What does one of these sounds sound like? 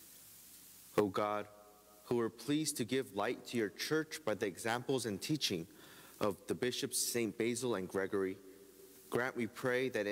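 A man chants aloud into a microphone in an echoing room.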